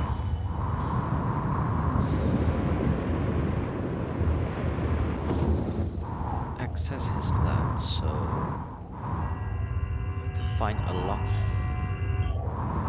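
Jet thrusters rumble and hiss steadily in a deep drone.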